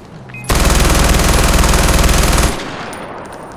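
A rifle fires a long rapid burst.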